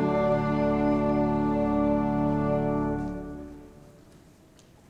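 An orchestra plays a final chord that rings out and fades.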